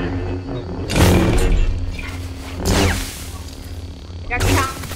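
A tool strikes a plant with sharp hits.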